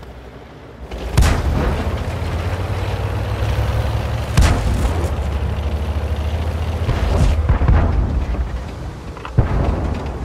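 A tank engine rumbles deeply as the tank drives.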